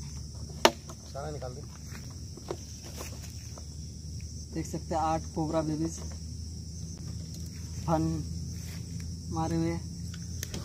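A plastic bottle crinkles and scrapes over dry leaves.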